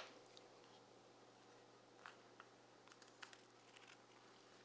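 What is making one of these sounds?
Scissors snip through leather.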